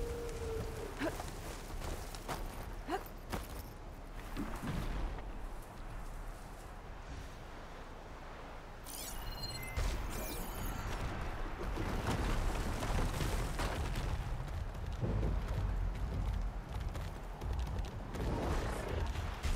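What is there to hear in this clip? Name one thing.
Wind blows steadily with a low rumble.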